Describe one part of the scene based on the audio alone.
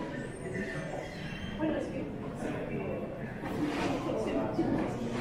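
A metro train rumbles as it pulls into an echoing underground station.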